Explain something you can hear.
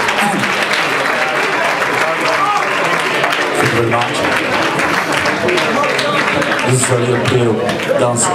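A man sings into a microphone, heard through loudspeakers.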